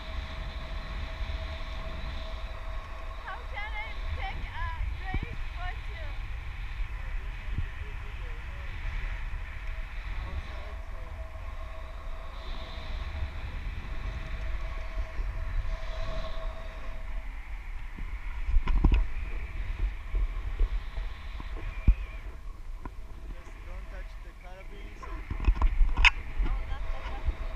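Wind rushes and buffets steadily past a close microphone outdoors.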